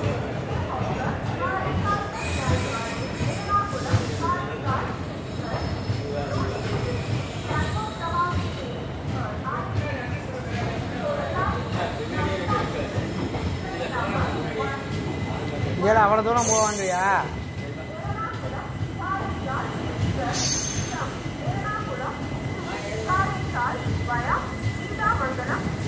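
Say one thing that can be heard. A passenger train rumbles and clatters past close by.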